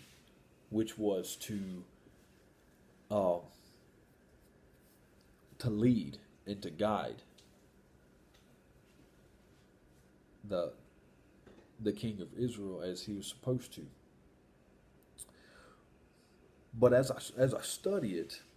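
A man speaks calmly and close, in short phrases with pauses.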